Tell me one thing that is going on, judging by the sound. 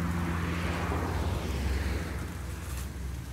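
A car drives past on the road and fades away.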